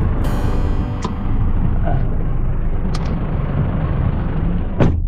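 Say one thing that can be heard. A car engine rumbles low and steady inside the cabin.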